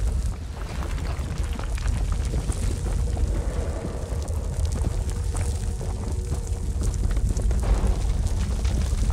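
Heavy armoured footsteps crunch on stone.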